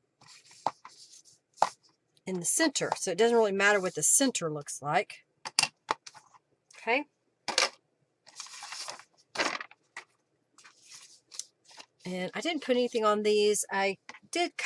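Paper rustles and slides as it is handled.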